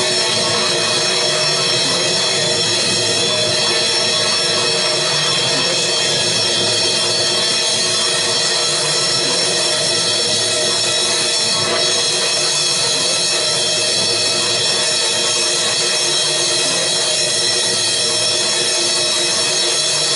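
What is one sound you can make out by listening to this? Cymbals are struck and shimmer repeatedly.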